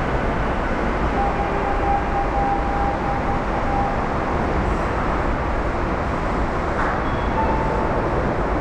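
A train hums steadily at a platform, in a large echoing space.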